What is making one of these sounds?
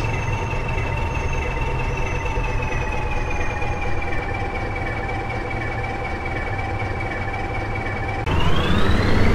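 A bus engine hums steadily at idle.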